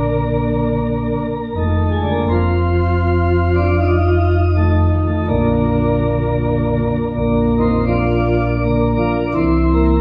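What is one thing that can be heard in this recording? An electronic organ plays sustained chords with a deep bass line.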